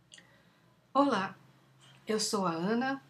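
A middle-aged woman speaks calmly into a headset microphone.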